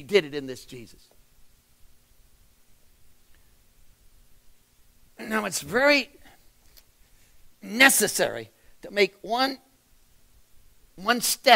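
A middle-aged man speaks expressively into a microphone, with pauses.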